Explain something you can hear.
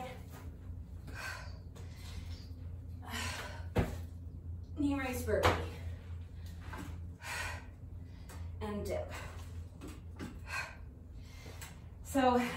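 A young woman breathes hard with effort.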